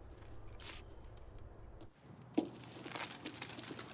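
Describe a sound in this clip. Footsteps climb stone steps.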